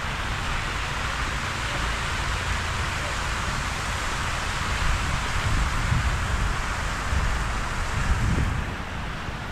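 Fountains splash and spray water steadily nearby.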